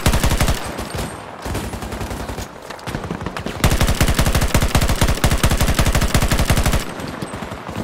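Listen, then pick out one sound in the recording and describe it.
A rifle fires in rapid bursts, close and loud.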